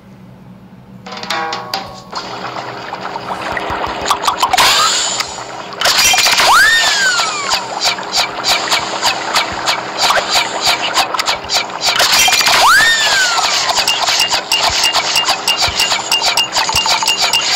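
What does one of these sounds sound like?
Playful electronic game sounds chime, pop and swoop.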